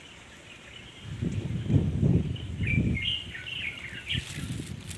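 Wind rumbles outdoors, buffeting loudly toward the end.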